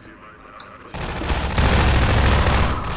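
A gun fires a rapid burst of shots.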